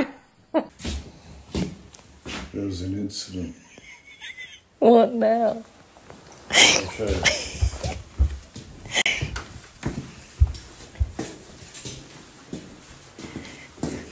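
A man's footsteps thud on a wooden floor.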